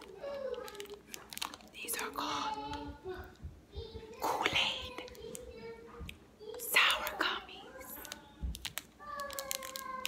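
A candy wrapper crinkles.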